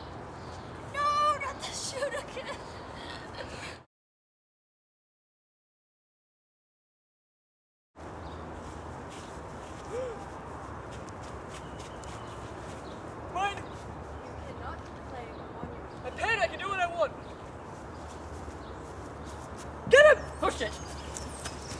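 A young man shouts with excitement outdoors.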